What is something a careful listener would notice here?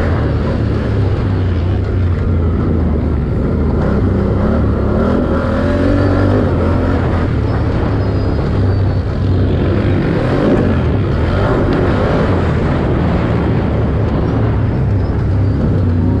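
Tyres crunch and rumble over rough dirt.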